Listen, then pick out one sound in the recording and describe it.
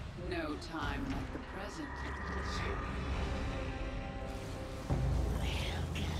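A large creature rumbles and gurgles.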